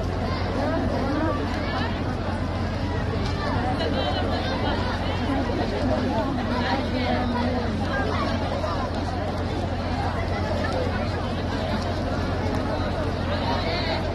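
A large crowd of women murmurs and chatters outdoors.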